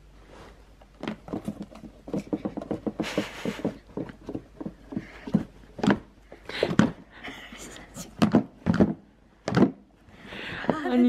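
A cardboard box scrapes and knocks as it is handled.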